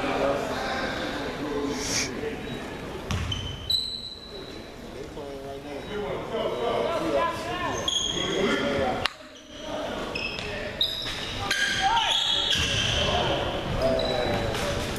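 Young men shout and call out to each other in a large echoing gym.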